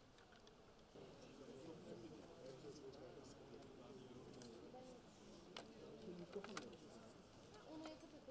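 A group of men and women murmur in quiet conversation nearby.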